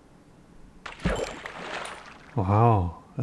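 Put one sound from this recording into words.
A fishing line splashes water as a fish is pulled out.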